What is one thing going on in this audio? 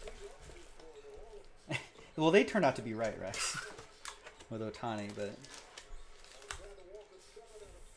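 Cardboard and plastic wrapping rustle and crinkle as a box is opened.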